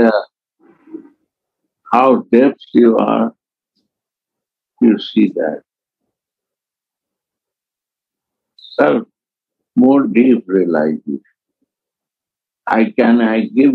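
An elderly man speaks calmly and slowly, close by, with pauses between phrases.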